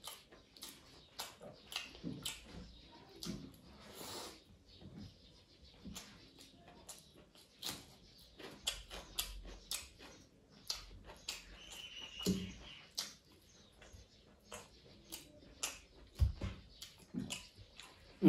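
Fingers squish and mix rice on a metal plate.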